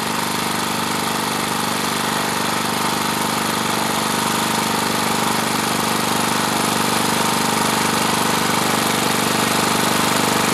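A small engine rattles steadily close by and grows slightly louder as it approaches.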